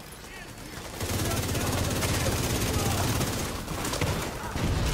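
Guns fire in rapid bursts, loud and close.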